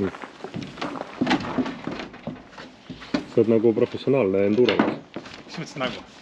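A tyre thumps onto a metal ramp.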